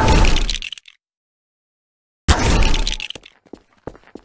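Plastic bricks clatter and scatter.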